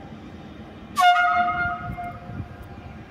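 A train horn blasts once, briefly.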